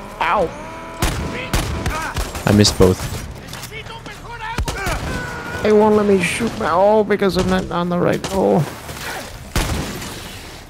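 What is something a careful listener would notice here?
Gunshots fire with sharp bangs.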